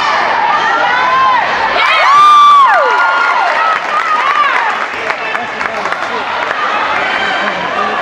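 Spectators shout and cheer in an echoing gym.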